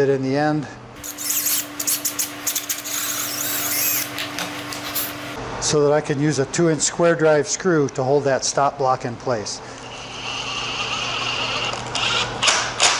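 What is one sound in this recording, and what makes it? A cordless drill whirs as it drives screws into wood.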